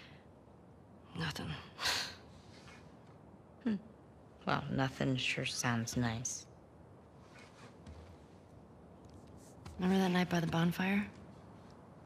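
A young woman answers quietly.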